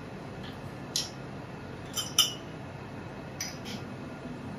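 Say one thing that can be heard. Small utensils clink lightly against glassware.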